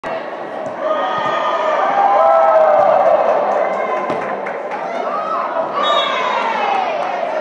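A crowd of young women shouts and cheers loudly in a large echoing hall.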